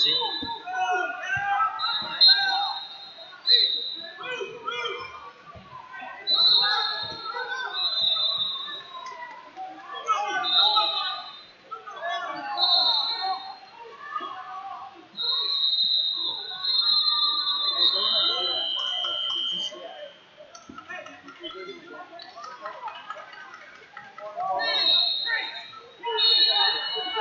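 A referee's whistle blows in short, shrill blasts.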